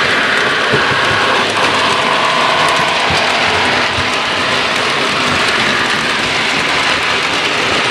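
Wheels of a model train click and rattle over the rails.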